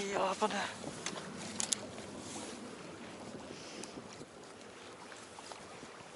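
Water laps gently against the side of a boat.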